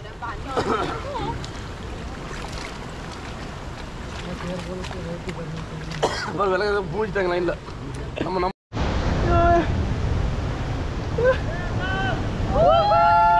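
Water rushes and splashes around small boats.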